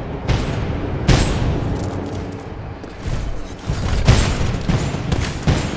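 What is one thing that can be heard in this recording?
Gunshots boom in quick bursts, with loud echoing blasts.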